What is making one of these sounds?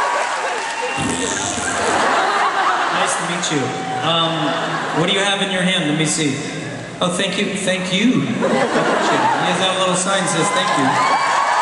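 A man speaks into a microphone over loudspeakers, in a large echoing arena.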